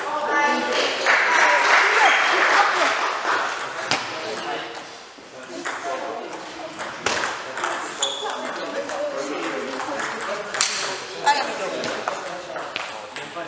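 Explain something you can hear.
Table tennis balls click sharply off paddles and tables in a large echoing hall.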